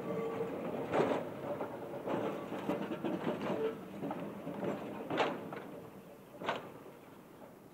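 A tram rolls past on its rails.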